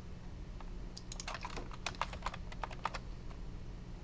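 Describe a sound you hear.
Keyboard keys click in a quick burst of typing.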